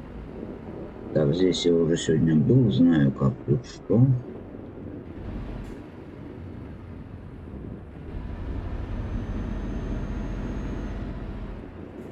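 A truck engine rumbles low and steadily as it drives.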